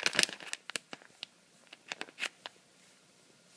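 A plastic bag crinkles in a hand.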